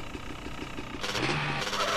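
A motorbike engine starts up and revs.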